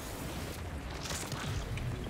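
A futuristic energy whoosh sweeps past.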